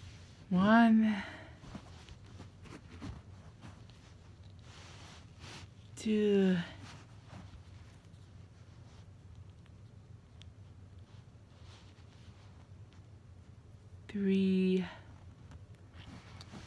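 Small plastic pieces click and rattle between fingers close by.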